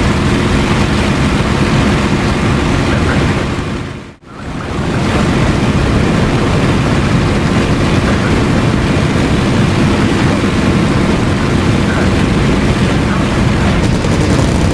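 A propeller aircraft engine drones loudly and steadily.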